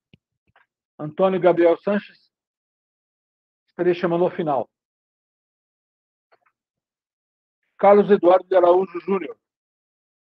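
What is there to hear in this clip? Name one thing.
A man speaks in short phrases through an online call.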